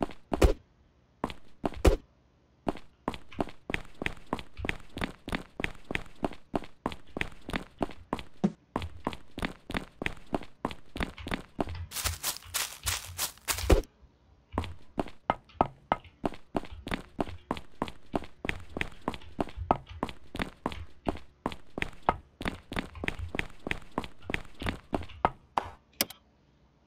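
Quick footsteps run steadily on hard ground.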